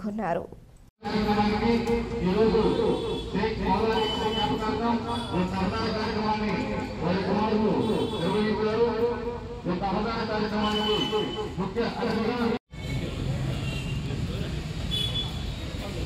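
A crowd of people chatters and murmurs nearby.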